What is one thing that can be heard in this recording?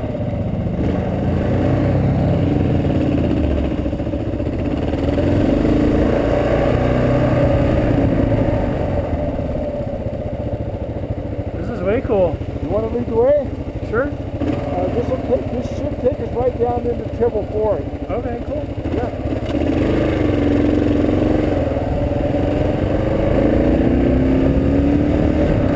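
A motorcycle engine runs and revs.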